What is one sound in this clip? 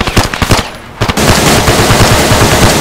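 A rifle fires a rapid burst of shots nearby.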